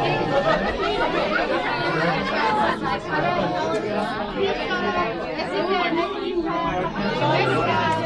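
Children and adults chatter nearby, talking over one another.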